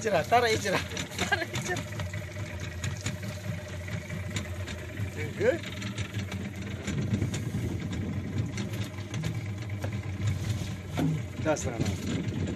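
A wire cage rattles and clanks against a boat's side.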